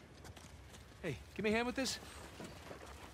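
A man calls out for help in a raised voice.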